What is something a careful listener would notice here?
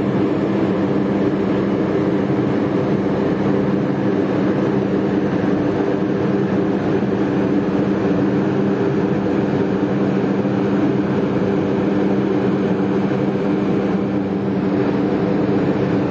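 A ship's engine hums steadily and low.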